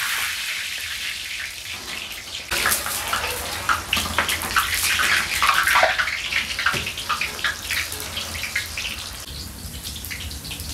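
Hot oil sizzles and hisses steadily in a large pan.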